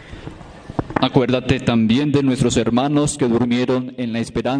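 A man chants in a sung voice through a microphone, echoing in a large hall.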